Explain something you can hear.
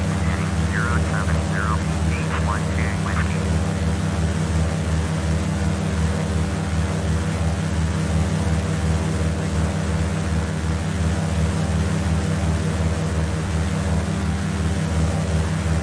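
A small propeller plane's engine drones steadily and loudly.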